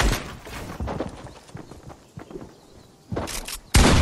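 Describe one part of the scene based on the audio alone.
Wooden walls snap into place with quick clattering knocks.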